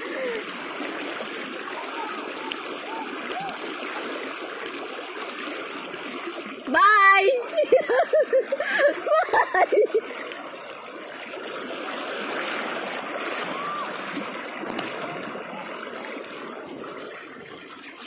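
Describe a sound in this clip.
A wide river rushes and churns steadily outdoors.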